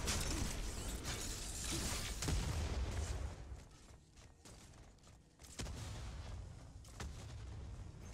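Energy blasts boom and crackle.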